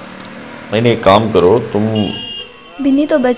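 A man talks on a phone.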